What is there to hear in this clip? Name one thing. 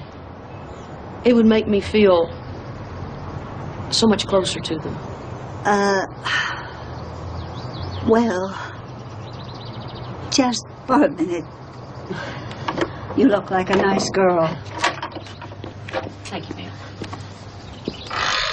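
A middle-aged woman speaks softly, close by.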